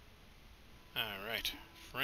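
A young man speaks casually into a microphone.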